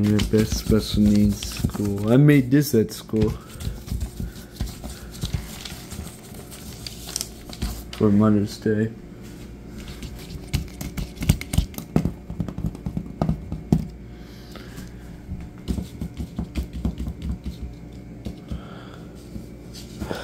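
Paper rustles softly under a hand.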